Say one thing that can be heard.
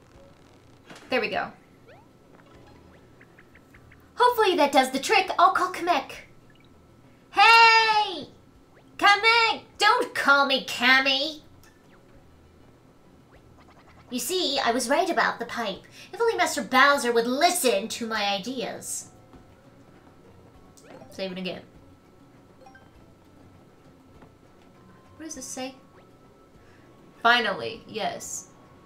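A young woman talks with animation into a close microphone, in bursts.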